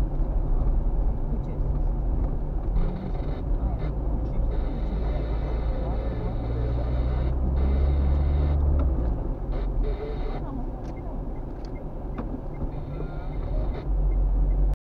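A car engine hums steadily from inside the car while it drives.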